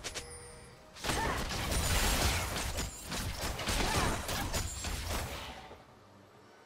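Video game spell effects crackle and boom during a fight.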